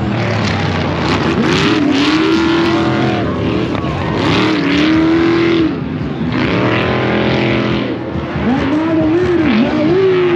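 Tyres spray gravel and dirt on a dirt track.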